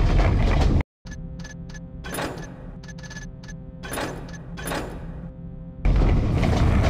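Menu buttons click sharply a few times.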